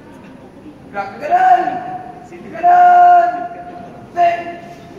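A young man shouts drill commands loudly in a covered, echoing space.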